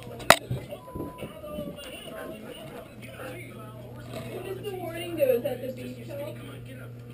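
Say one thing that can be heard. A dog whines and howls in drawn-out, wavering moans close by.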